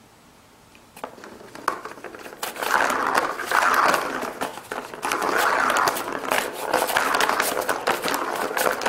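A ball rattles and rolls around a plastic track.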